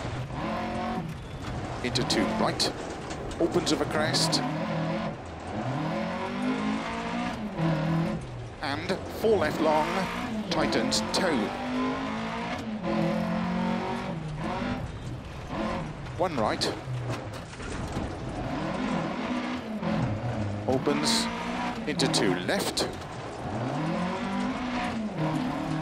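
A car engine revs up and down as it races along.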